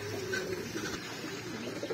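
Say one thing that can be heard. A pigeon flaps its wings briefly.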